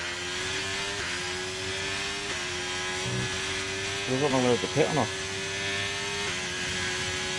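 A racing car's gears shift up with sharp drops in engine pitch.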